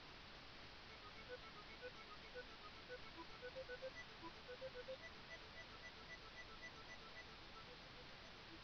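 Bleeping retro game tones play a short melody.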